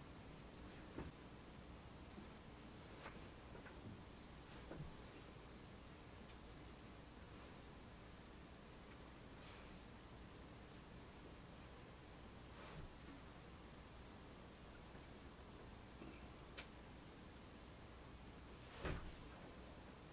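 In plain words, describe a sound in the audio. Hands handle and press a plasticine clay sculpture on a metal stand, with occasional soft knocks.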